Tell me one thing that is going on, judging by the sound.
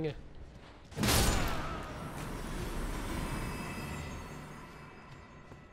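A heavy weapon strikes with a booming crash that rings away.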